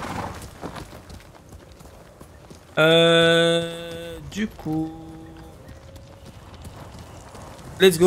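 A horse's hooves thud at a gallop.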